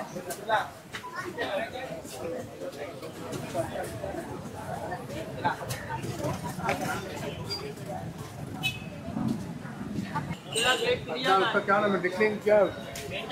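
A crowd of people chatter in a busy market outdoors.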